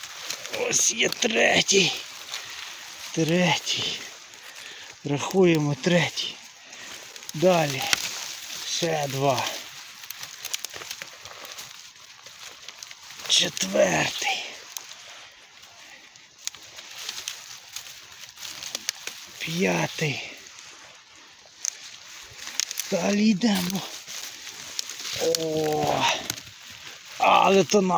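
Dry grass and leaves rustle close by as hands push through them.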